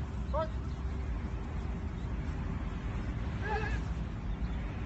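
A man calls out briefly to a dog from a short distance.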